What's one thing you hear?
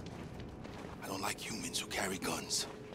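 A young girl speaks quietly and sadly.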